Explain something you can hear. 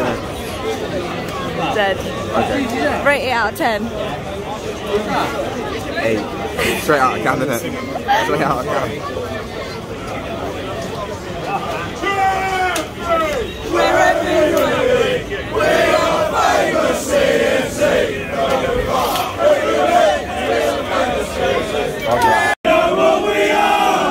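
A crowd chatters loudly in an echoing hall.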